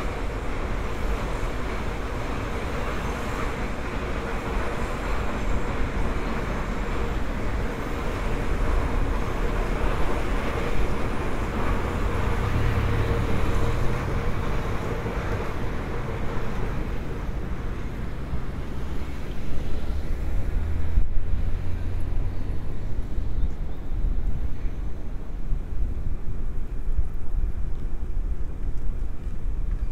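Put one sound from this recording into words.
Traffic rumbles steadily along a city street outdoors.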